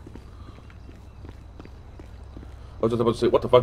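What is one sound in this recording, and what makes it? Footsteps tap down wooden stairs.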